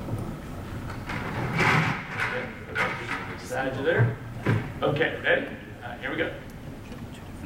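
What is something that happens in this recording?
A man speaks loudly with animation in a large echoing room.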